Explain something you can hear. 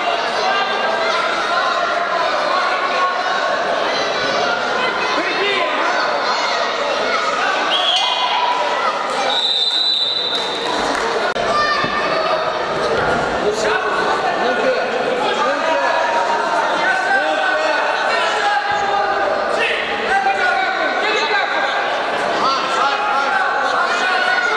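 A crowd of spectators chatters and calls out in an echoing hall.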